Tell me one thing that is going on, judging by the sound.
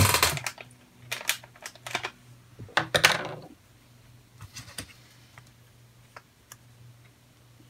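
Plastic pieces click and snap as they are pressed together.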